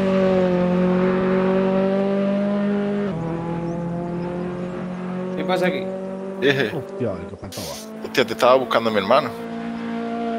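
A racing car engine drones steadily, shifting pitch as the car brakes and accelerates.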